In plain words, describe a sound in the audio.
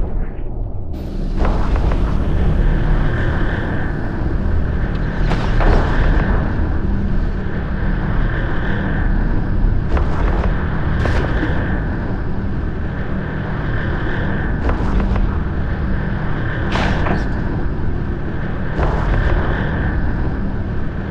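Laser weapons fire in repeated bursts with sharp crackles.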